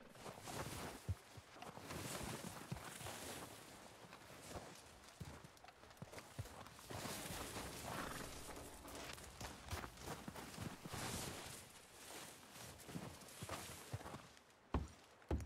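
Wind blows steadily through snow outdoors.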